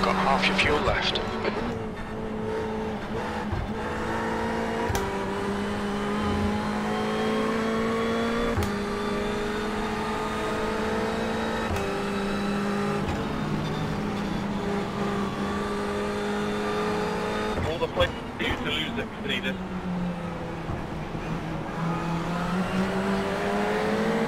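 A racing car engine roars steadily, its pitch climbing and dropping with each gear change.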